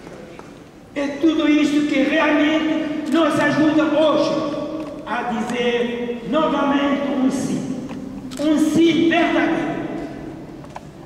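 An elderly man sings into a microphone, heard through loudspeakers.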